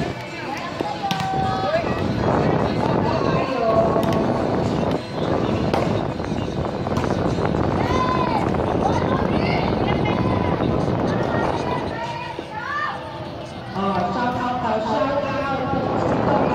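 Young women shout and call out to each other outdoors.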